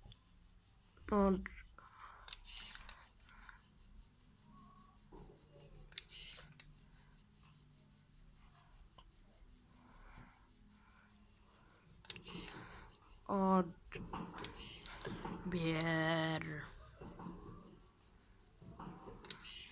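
A small pen motor hums softly.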